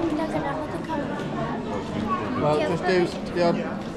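A young boy talks close by.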